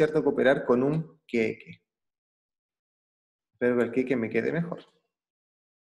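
A young man speaks calmly into a microphone, close by.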